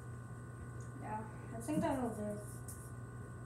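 A young boy speaks nearby.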